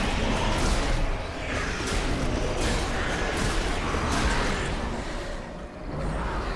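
Magic blasts crackle and boom in a fantasy battle.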